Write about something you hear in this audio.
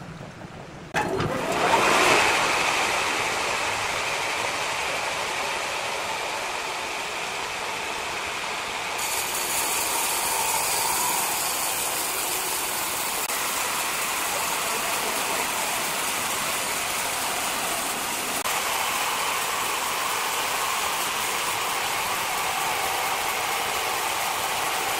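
A horizontal band saw cuts through a large hardwood log.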